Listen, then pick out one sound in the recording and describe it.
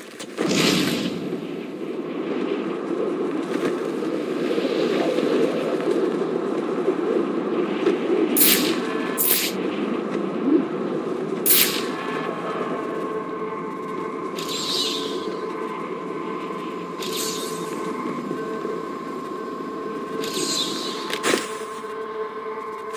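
Wind rushes steadily past, as if gliding high through the air.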